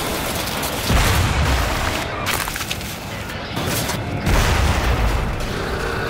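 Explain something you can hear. Explosions blast nearby with heavy booms.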